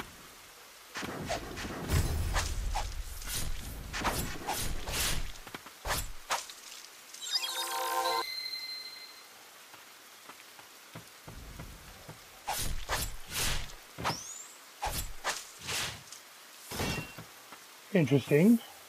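Blades slash and strike with sharp swishing hits.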